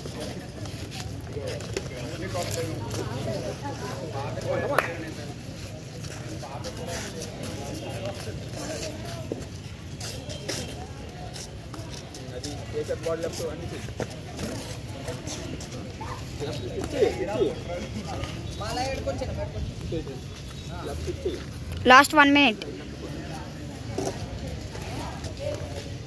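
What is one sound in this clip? Boxing gloves thump against each other in quick punches.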